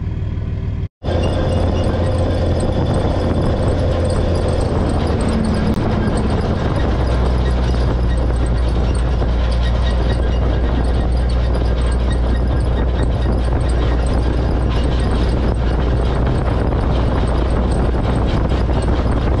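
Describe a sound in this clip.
A towed trailer rattles and clanks.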